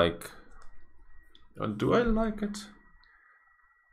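A man speaks briefly and casually, close to a microphone.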